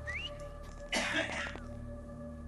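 A second man whistles in reply.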